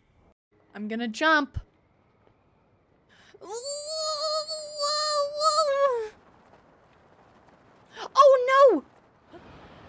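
A young man speaks and sings out loudly into a microphone.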